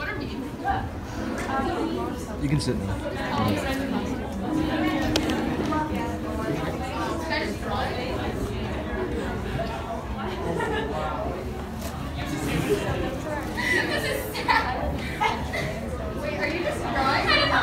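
A young woman speaks with animation to a room of people.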